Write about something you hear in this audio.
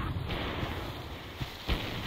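An explosion bursts with a loud bang.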